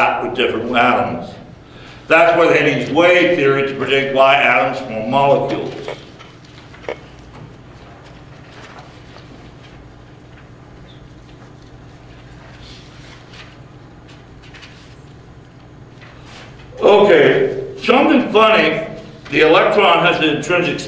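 A middle-aged man lectures nearby, speaking clearly with long pauses.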